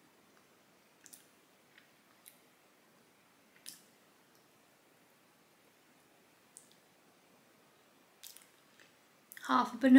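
A young woman chews and smacks her lips softly close by.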